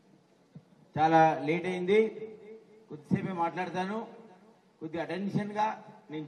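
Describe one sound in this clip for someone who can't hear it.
A man speaks loudly into a microphone over a loudspeaker, with animation.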